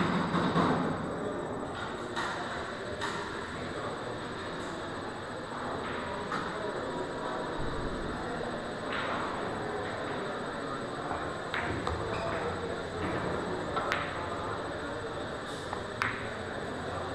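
Pool balls clack sharply against each other.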